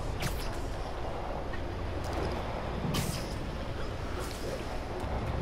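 Web lines shoot out with sharp, hissing swishes.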